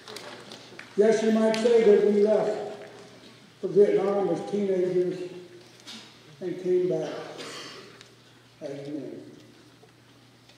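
A man speaks calmly into a microphone over loudspeakers in a large echoing hall.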